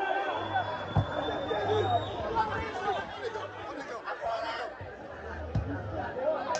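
A football is kicked with a dull thud.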